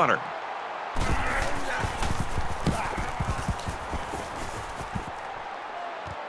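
Football players collide with heavy thuds.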